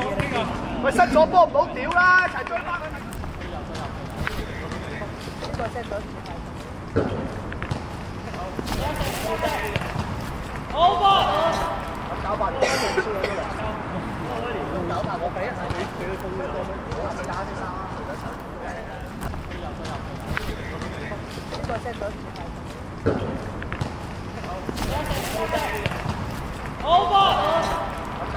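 Young men shout and cheer excitedly.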